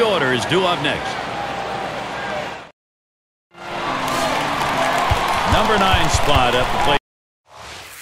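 A large crowd murmurs and cheers in a big stadium.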